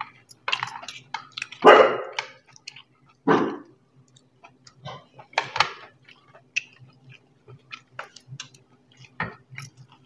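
A spoon clinks lightly against a bowl.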